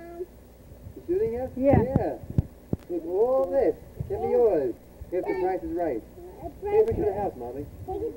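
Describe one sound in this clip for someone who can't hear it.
A young child talks and calls out nearby.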